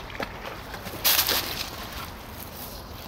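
Water splashes as a dog wades through a lake.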